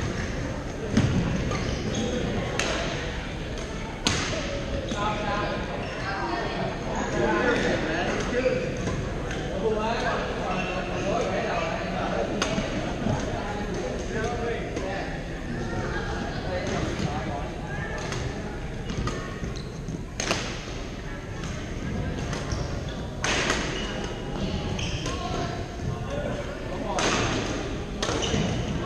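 Several young men and women call out and chatter around the hall.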